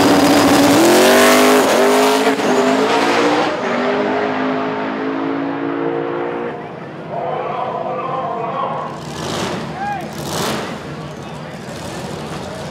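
A drag racing car launches at full throttle and roars away, fading into the distance.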